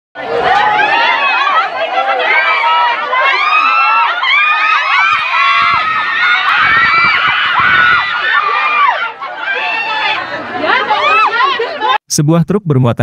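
A crowd of men and women shout and call out excitedly nearby, outdoors.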